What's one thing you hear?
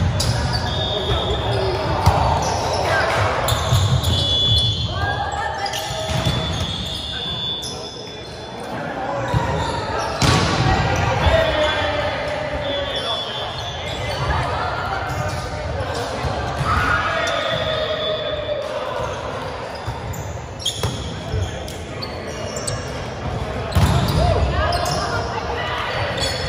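Young men and women call out and chatter in a large echoing hall.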